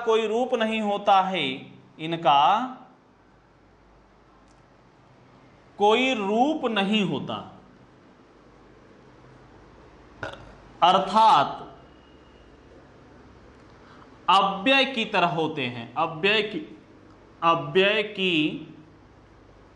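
A young man speaks calmly in short bursts, close by.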